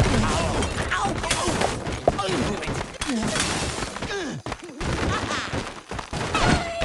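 Game sound effects chirp and squeal in quick bursts.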